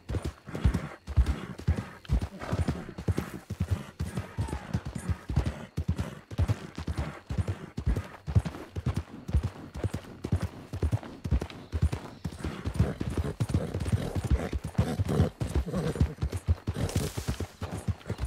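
A horse's hooves thud steadily on a dirt trail.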